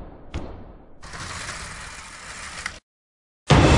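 Curtains slide open with a swishing rustle.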